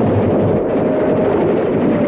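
Propeller plane engines drone overhead.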